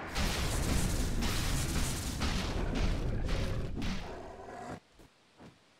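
Magic blasts crackle and boom in a fight.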